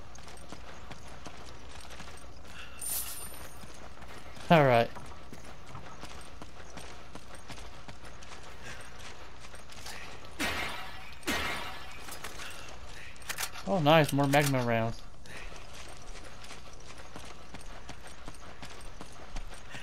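Footsteps thud on dirt at a running pace.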